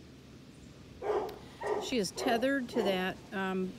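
A dog whines and yelps close by.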